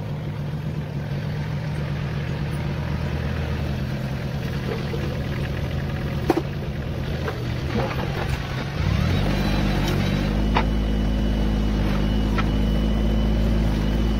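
A blade scrapes and pushes through soil and stones.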